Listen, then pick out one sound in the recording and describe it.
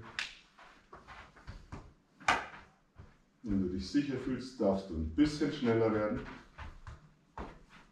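A football is tapped and kicked on a carpeted floor.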